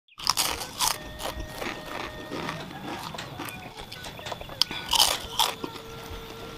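A man smacks his lips and slurps close to the microphone.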